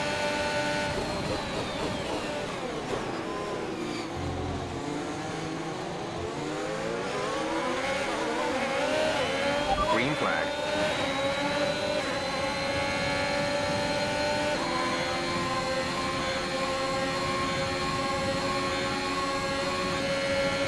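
A racing car engine whines loudly, dropping in pitch as the car slows for a corner and then rising again as it speeds up.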